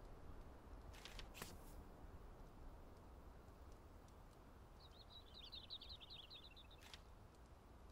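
A soft menu click sounds as a selection changes.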